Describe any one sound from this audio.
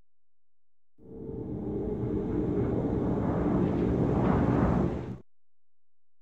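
Air rushes loudly past in a long whoosh.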